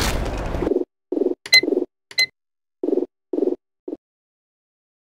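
Menu buttons click with short beeps.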